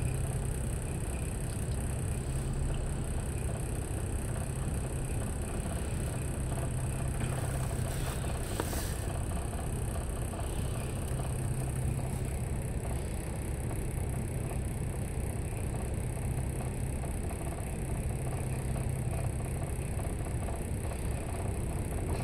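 Traffic hums along a city street at night.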